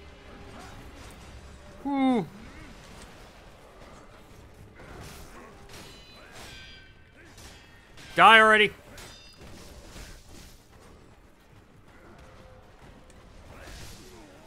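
Swords clash with sharp metallic strikes.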